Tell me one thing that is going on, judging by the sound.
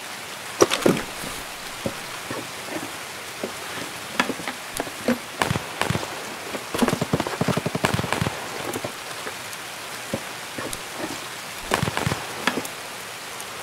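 Gear rustles and clicks as items are moved about.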